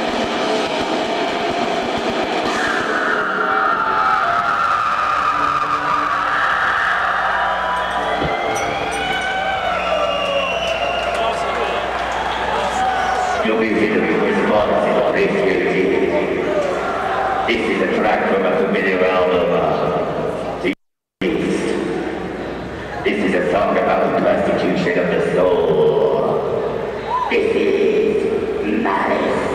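A live rock band plays loudly in a reverberant room.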